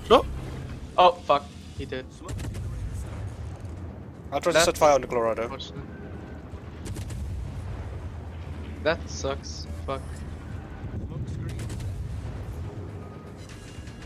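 Heavy naval guns fire with deep booms.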